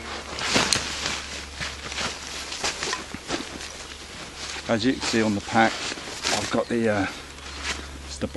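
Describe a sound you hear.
A bag rustles as it is handled.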